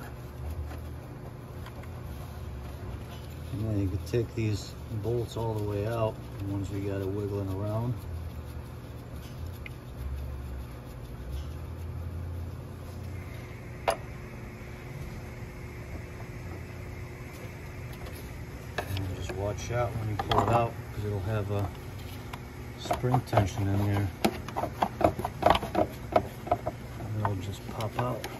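Hard plastic parts click and rattle as they are handled.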